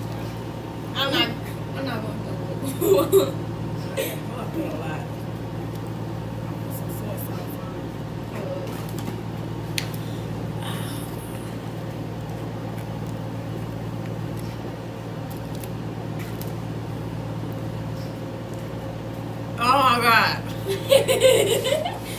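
A girl laughs and shouts close by.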